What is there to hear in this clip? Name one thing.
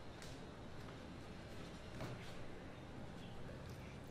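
Footsteps tread softly on a wooden floor.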